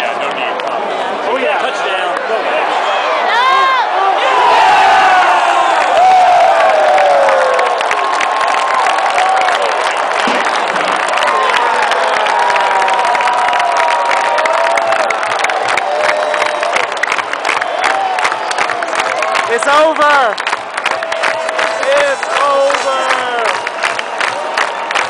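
Many people in a crowd shout and whoop close by.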